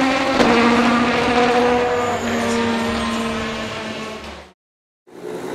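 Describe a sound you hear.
A race car engine roars as the car speeds past on a wet track, fading into the distance.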